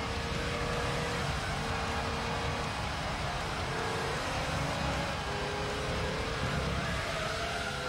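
A racing car engine drones steadily, its pitch stepping up and dropping as it shifts gears.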